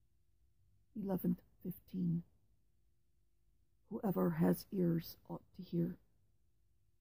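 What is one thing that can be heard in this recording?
A middle-aged woman speaks calmly into a headset microphone, close up, in short bursts.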